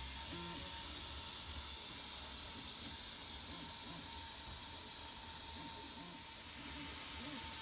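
A 3D printer's stepper motors whir and buzz in short, shifting pitches.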